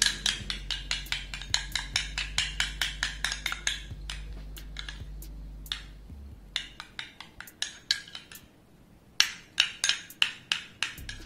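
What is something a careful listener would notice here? A metal spoon clinks rapidly against a glass bowl while stirring.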